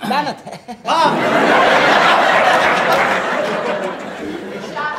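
A group of young men laugh loudly.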